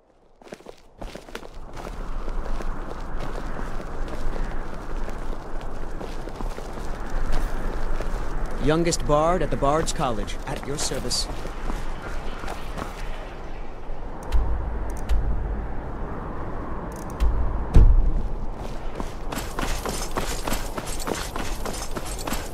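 Footsteps fall on stone paving.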